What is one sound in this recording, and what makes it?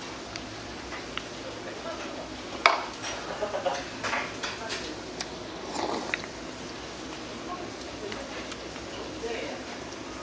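Chopsticks click against a dish.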